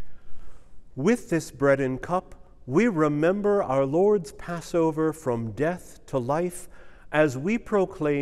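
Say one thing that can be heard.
An elderly man speaks slowly and expressively, close by.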